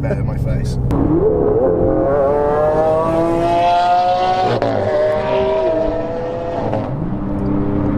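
A sports car engine roars loudly, rising in pitch as it revs.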